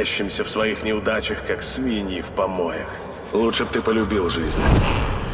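A man speaks in a low, firm voice, close by.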